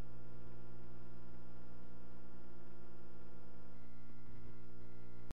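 A piano plays a steady run of repeated notes.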